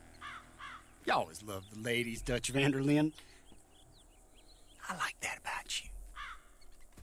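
An older man speaks slowly and gruffly.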